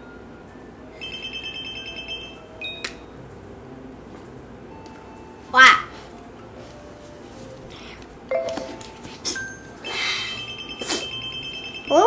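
Bright electronic game chimes and jingles ring out.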